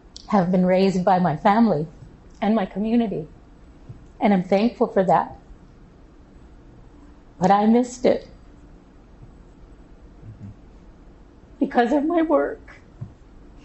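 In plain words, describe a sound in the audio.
An older woman speaks calmly and thoughtfully into a close microphone, with pauses.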